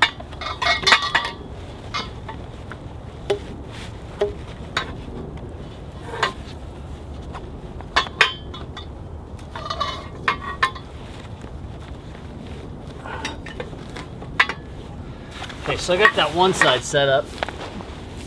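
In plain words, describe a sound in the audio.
Metal poles clink and knock together.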